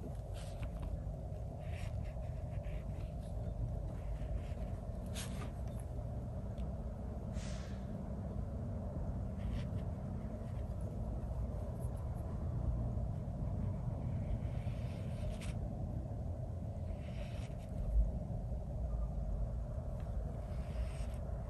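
A brush softly strokes paper.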